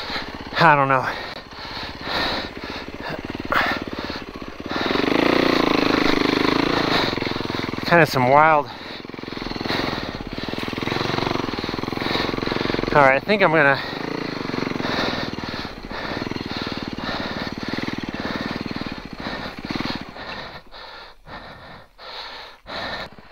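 Snow hisses and swishes under a snowmobile's track.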